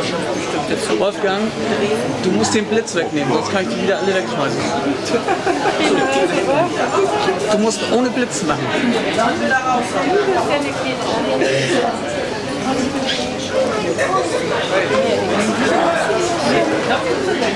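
A crowd of adults chatter all around.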